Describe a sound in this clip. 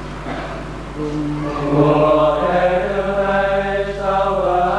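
A man chants slowly through a microphone.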